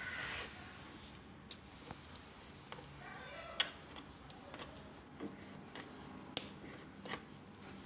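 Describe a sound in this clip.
A socket wrench turns a bolt on a motorcycle carburettor.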